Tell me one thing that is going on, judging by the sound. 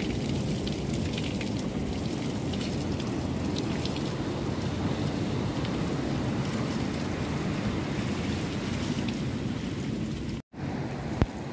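Water from a shower splashes onto a man.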